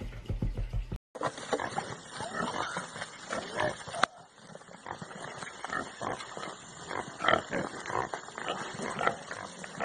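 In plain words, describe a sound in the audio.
Animals scuffle and squeal on dusty ground.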